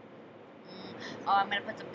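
A young woman exclaims loudly close by.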